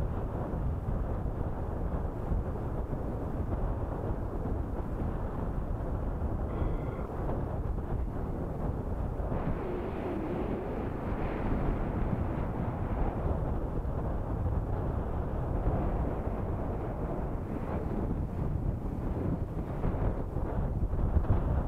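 Fast water swirls and laps against rocks close by.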